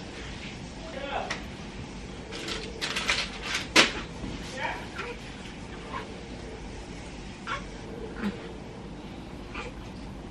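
Bedding rustles and swishes up close as it is handled.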